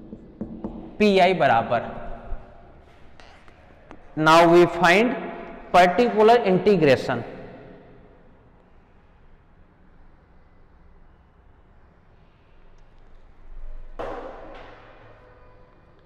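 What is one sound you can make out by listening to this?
A man lectures in a raised, animated voice in a room with some echo.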